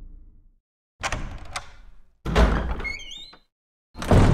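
A heavy wooden door creaks open with a loud thud.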